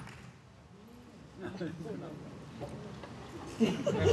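Young women laugh and chatter.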